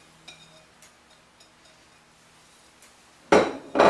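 A spoon scrapes food from one bowl into another.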